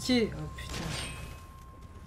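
A sword strikes with a sharp metallic clang.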